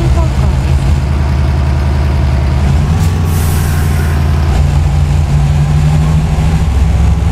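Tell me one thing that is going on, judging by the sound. A truck engine rumbles steadily as the truck drives along.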